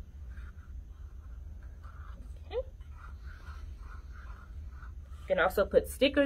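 A marker squeaks faintly on cardboard.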